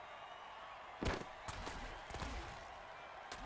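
Players crash together in heavy thuds.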